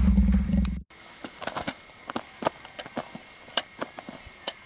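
A person tumbles and thumps onto soft sand.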